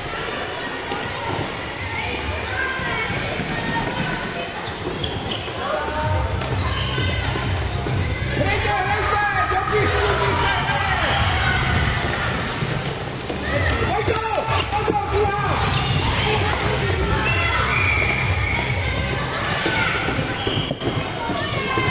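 Children shout and call out in a large echoing hall.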